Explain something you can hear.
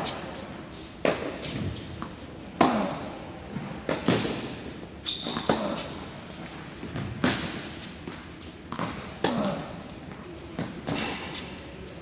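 Tennis balls are struck back and forth with sharp pops, echoing in a large indoor hall.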